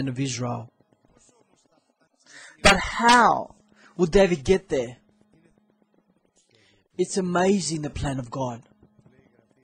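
A middle-aged man speaks with emphasis through a microphone, in short phrases with pauses.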